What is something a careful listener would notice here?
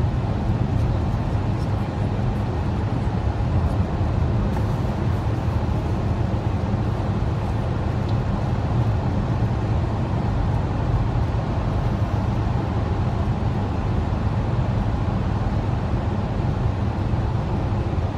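Tyres roar steadily on a highway surface.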